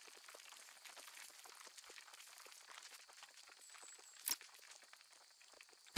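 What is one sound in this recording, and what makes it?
Footsteps crunch quickly over dry dirt and gravel.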